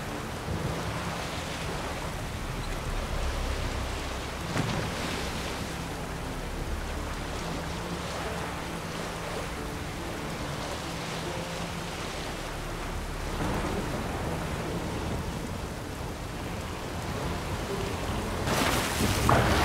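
Rain pours down steadily over rough sea.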